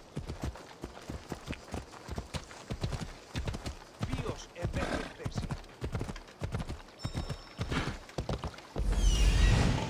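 Horse hooves clop rapidly on a dirt path.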